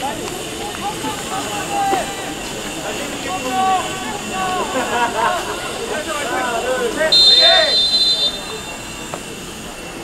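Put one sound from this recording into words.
Young players shout and call to each other outdoors in the distance.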